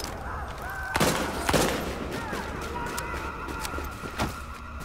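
Gunshots crack sharply a few times.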